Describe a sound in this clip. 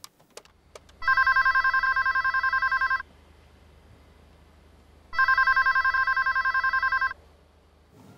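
A desk phone rings in bursts.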